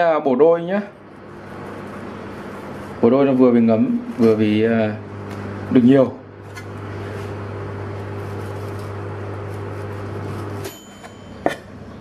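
A knife cuts through shrimp and taps a cutting board.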